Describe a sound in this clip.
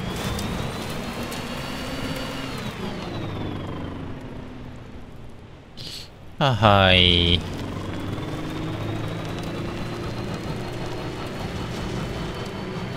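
A vehicle engine hums and revs as it drives along a road.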